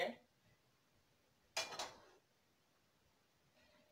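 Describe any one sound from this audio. A metal pot clanks.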